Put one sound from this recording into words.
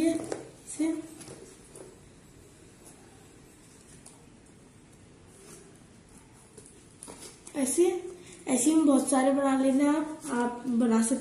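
A young girl speaks close by, calmly explaining.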